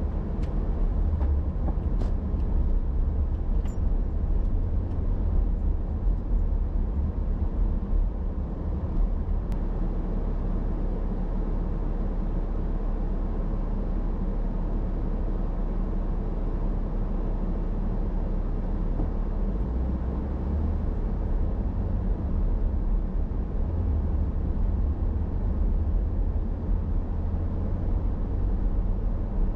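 A car engine hums steadily from inside the vehicle.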